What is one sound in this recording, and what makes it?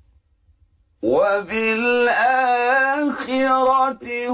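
A man chants melodically in a clear, sustained voice.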